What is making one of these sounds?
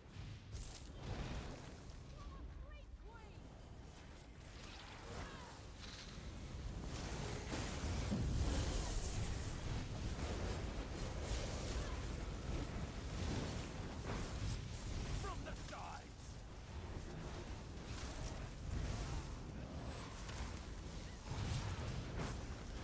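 Spell blasts and magic explosions crackle and boom in a fierce fight.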